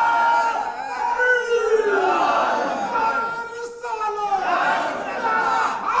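A crowd of men chants loudly together, raising their voices with fervour.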